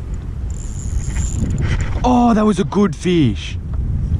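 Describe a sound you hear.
A fishing reel whirs as a line is wound in.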